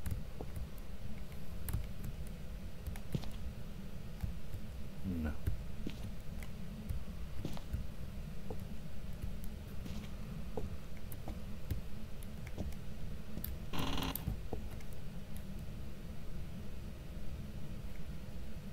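A handheld electronic meter crackles and clicks.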